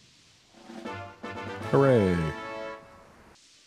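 A bright, rising musical chime plays.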